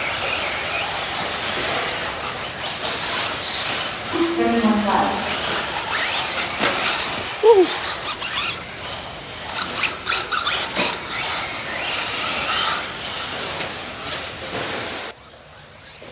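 Tyres of small cars crunch and skid on packed dirt.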